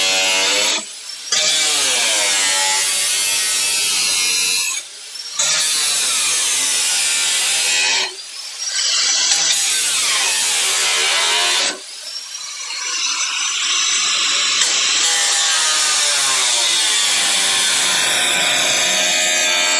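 An angle grinder whines loudly as it cuts into sheet metal, with short pauses.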